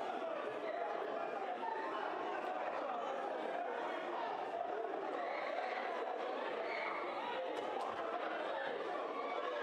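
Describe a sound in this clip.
A crowd of men shouts and argues loudly in a chaotic scuffle.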